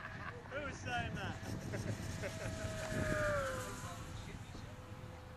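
A small aircraft drones high overhead, its pitch dropping as it passes.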